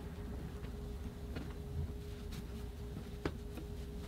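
Soft taps sound as rolled fabric is set down on a wooden surface.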